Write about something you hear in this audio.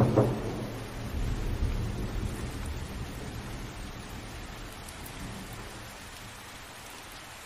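Thunder rumbles low and heavy, then slowly fades.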